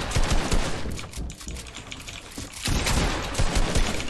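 A pickaxe thuds against wood.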